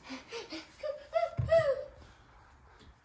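A young child speaks nearby.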